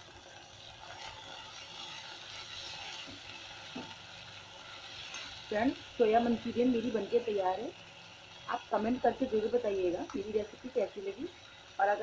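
A metal spoon stirs and scrapes in a pan.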